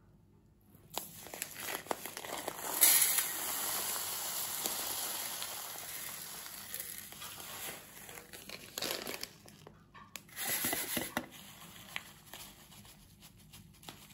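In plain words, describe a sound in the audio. Breadcrumbs pour and patter onto a metal tray.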